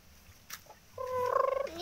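A hen clucks nearby.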